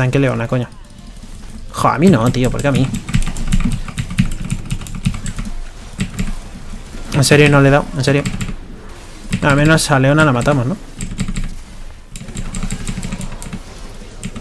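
Game spells zap and clash in quick bursts.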